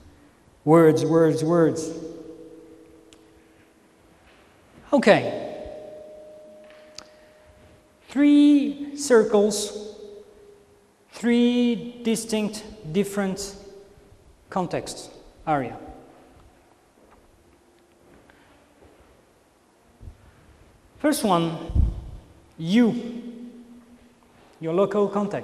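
A man speaks calmly into a microphone in a room with some echo, pausing often.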